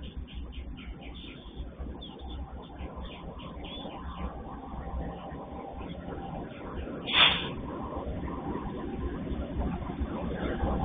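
A diesel train engine rumbles as a train approaches, growing louder.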